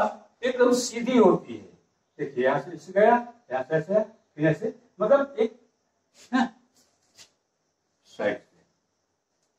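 A middle-aged man explains with animation, speaking close by.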